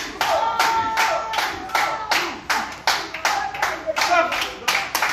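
A crowd of spectators shouts and chants in loud, rhythmic bursts nearby.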